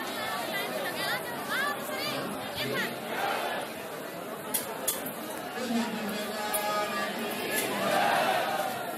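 Men and women in a crowd shout and cheer.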